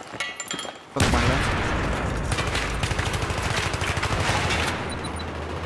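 A rifle fires in rapid bursts nearby.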